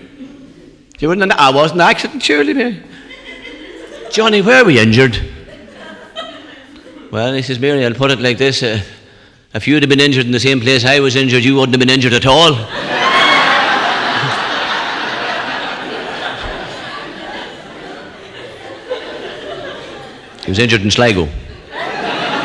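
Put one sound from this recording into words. A man tells jokes with animation.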